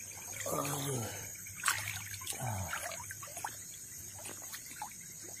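Muddy floodwater rushes past.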